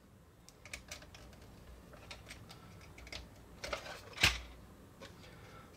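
Plastic parts of a toy click and clack as hands handle them.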